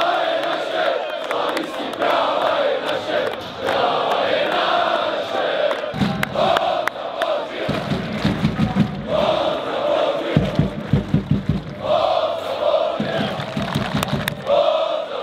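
A large crowd sings and chants loudly in an open stadium.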